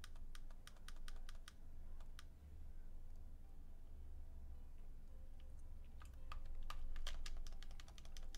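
Chiptune game music plays softly.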